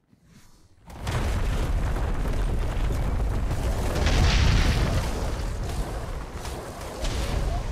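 A giant beast roars loudly.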